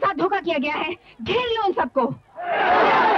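A woman shouts in distress.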